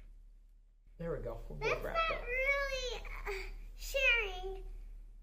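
A young girl speaks excitedly close by.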